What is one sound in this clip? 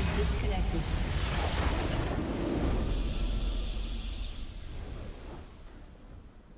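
A burst of magical spell effects crashes and fades.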